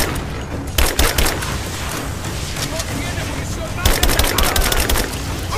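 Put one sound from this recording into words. A rifle fires in rapid bursts, with sharp echoing shots.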